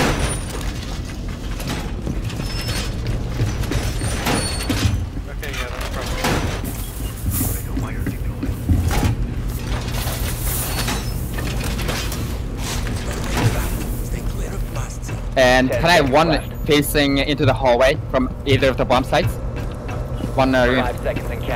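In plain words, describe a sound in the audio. Footsteps thud on a hard metal floor.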